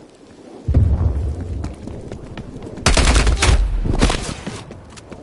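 A rifle fires rapid, loud bursts of shots close by.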